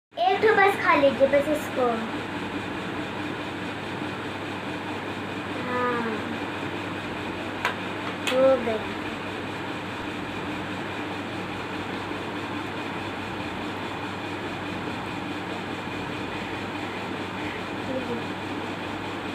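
A young girl speaks nearby in short bursts.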